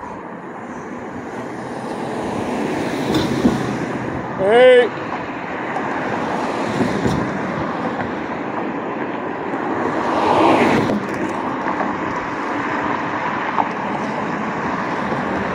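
Traffic hums steadily on a nearby street outdoors.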